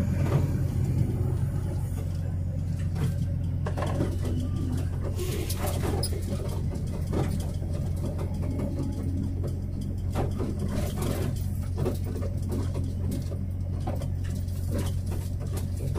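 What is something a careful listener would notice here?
A vehicle engine hums steadily while driving along a road.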